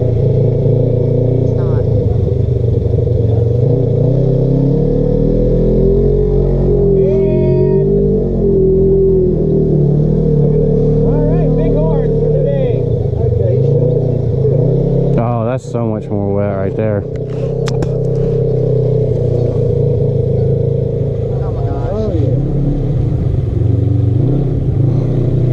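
An off-road vehicle's engine rumbles steadily and revs up and down.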